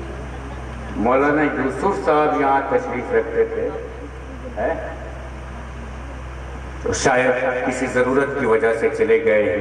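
A man speaks loudly and with feeling through a microphone and loudspeakers.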